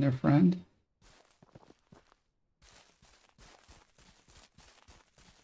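Footsteps crunch through grass and dry leaves.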